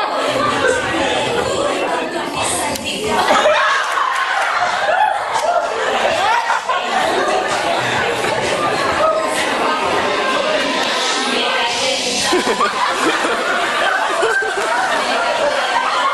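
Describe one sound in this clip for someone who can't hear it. Young men laugh and shout with animation.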